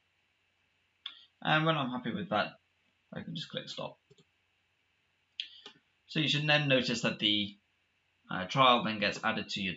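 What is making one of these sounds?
A man speaks calmly and clearly into a nearby microphone, in short phrases.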